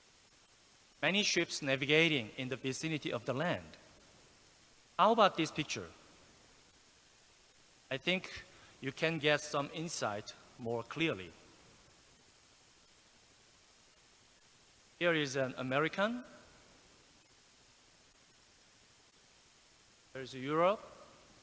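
A middle-aged man speaks calmly through a microphone in a large hall, in short phrases with pauses.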